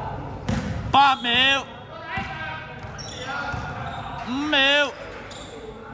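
A referee blows a trilling whistle in a large echoing hall.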